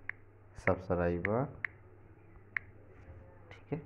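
Keys on a phone keyboard tap softly.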